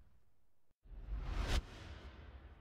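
A deep whoosh swells up and builds.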